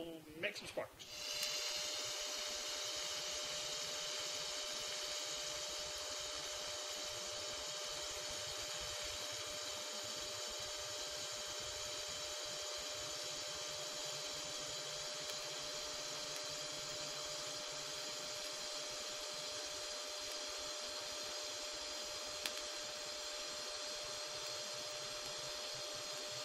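A welding arc hisses and crackles steadily.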